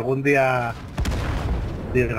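A shell explodes with a loud boom nearby.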